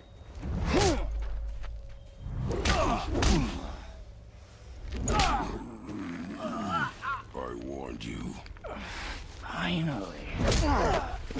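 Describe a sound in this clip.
A man grunts and growls with strain.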